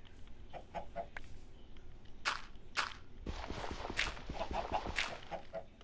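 Chickens cluck close by.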